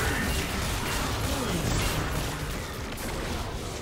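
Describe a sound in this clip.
Game characters hit each other with sharp impacts.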